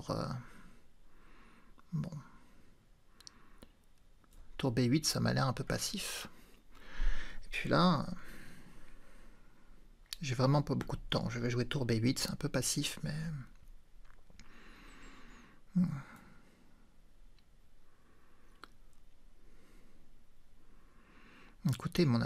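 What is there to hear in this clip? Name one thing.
A man talks calmly into a close microphone, in short bursts with pauses.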